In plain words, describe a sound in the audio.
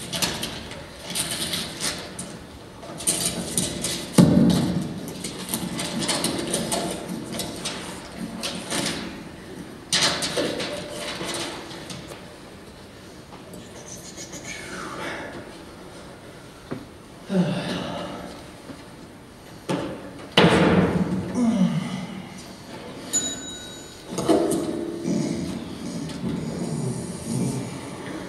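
A young man speaks loudly and with animation in a large echoing hall.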